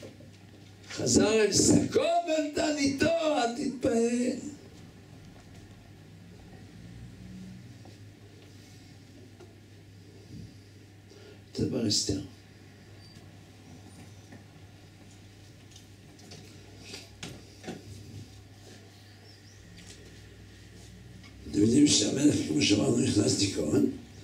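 An elderly man speaks into a microphone with animation, with long pauses.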